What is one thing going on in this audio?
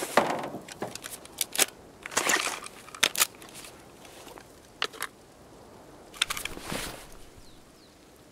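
Papers and boxes rustle as a searcher rummages through a pile.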